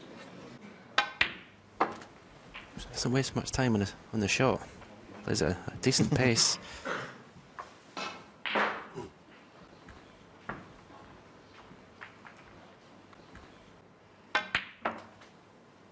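Snooker balls click sharply against each other.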